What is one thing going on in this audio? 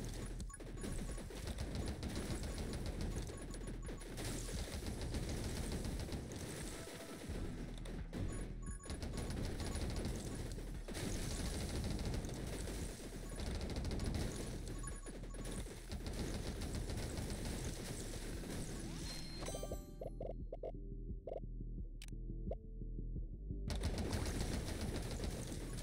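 Rapid game gunfire crackles and pops without pause.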